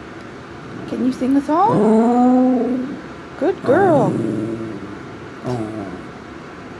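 A dog lets out long, wavering howls.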